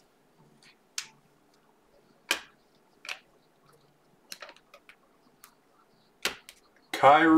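Cards click and slide against each other.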